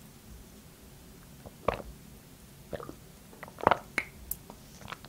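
A young woman gulps a drink up close.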